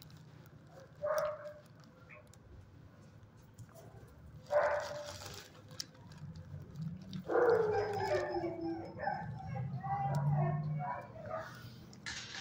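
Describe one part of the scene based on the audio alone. A dog whimpers softly close by.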